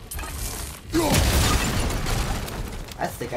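An explosion booms and crackles nearby.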